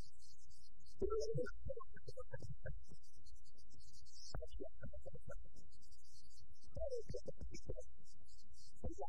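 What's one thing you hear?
A man speaks with emotion.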